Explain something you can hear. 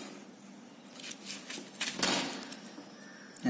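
Paper rustles.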